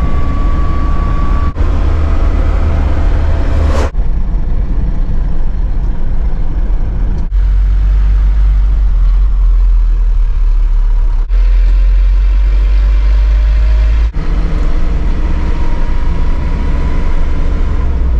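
A vehicle's engine rumbles low and steady while driving.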